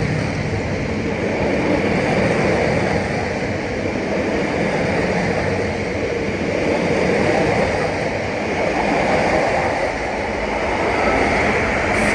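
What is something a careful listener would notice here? A train rumbles past close by, its wheels clattering on the rails.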